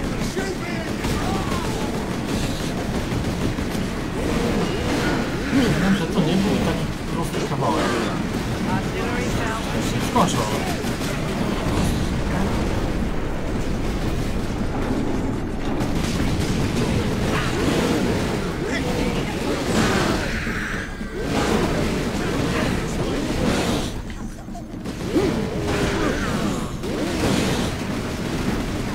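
Gunfire and explosions from a video game clatter loudly.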